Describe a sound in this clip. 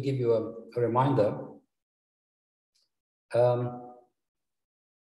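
A man speaks calmly into a microphone, lecturing.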